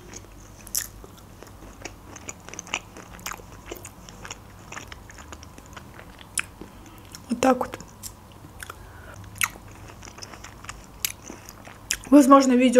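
A young woman chews food with wet, crunchy sounds close to a microphone.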